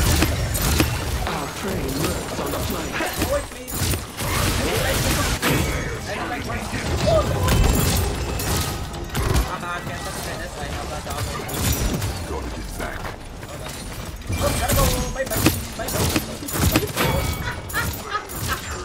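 Game impacts and explosions crack and boom.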